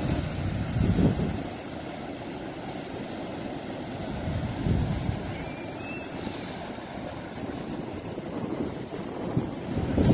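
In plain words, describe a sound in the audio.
Waves wash softly onto a rocky shore in the distance.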